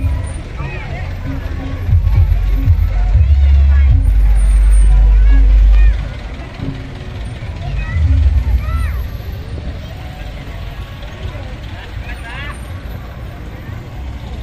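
A crowd chatters outdoors along a street.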